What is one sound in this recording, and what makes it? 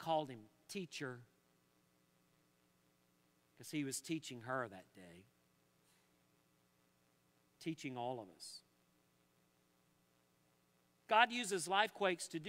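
An older man speaks calmly and slowly through a microphone, with long pauses.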